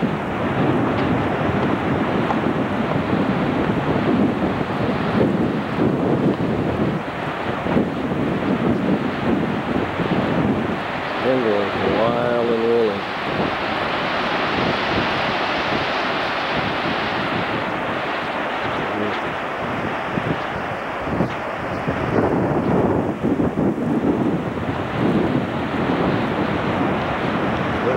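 Wind blows hard, buffeting outdoors.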